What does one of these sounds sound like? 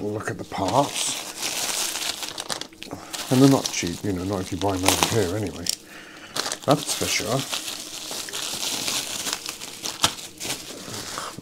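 Plastic bubble wrap crinkles and rustles close by.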